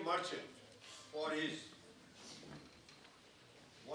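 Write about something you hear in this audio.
An elderly man speaks into a microphone over loudspeakers in a large room.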